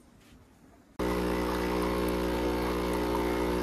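A coffee machine pump hums loudly and steadily.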